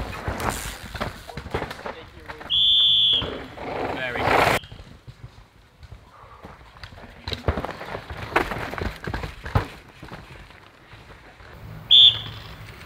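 Bike tyres rattle and skid over rough dirt and roots.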